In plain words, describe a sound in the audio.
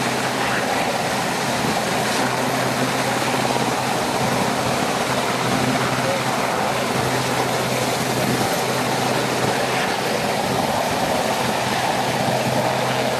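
A helicopter hovers close by, its rotor thudding loudly and its engine whining steadily.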